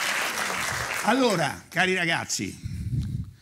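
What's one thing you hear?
A man speaks loudly through a microphone in an echoing hall.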